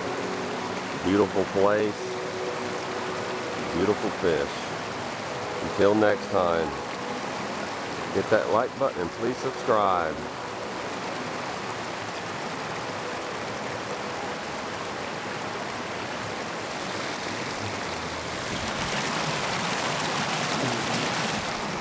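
Water rushes steadily over a weir.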